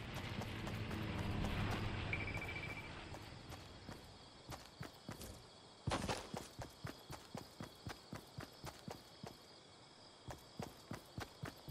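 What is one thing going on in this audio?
Footsteps patter quickly across the ground.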